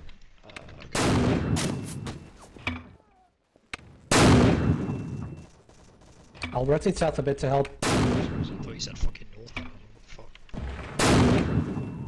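A mortar fires with loud, booming thumps.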